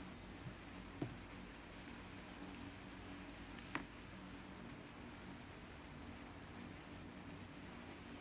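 Small objects click softly as a woman handles them.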